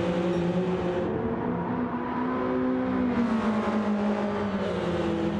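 A race car engine roars at high revs, its pitch rising and falling with gear changes.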